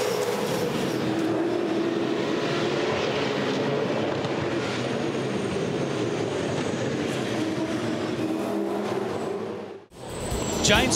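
Race car engines roar past at high speed.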